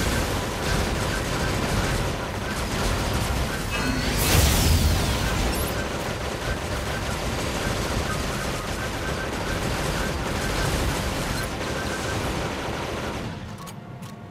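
A large sword clangs and swishes in combat.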